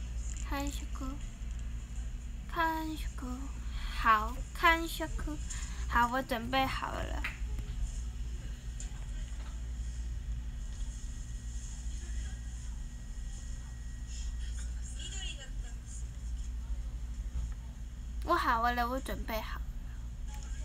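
A young woman speaks softly and playfully, close to a microphone.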